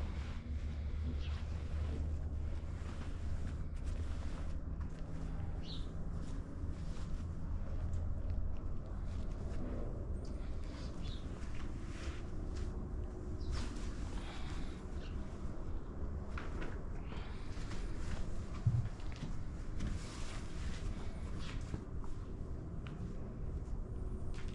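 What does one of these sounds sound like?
Cloth rustles and flaps as it is handled and shaken out.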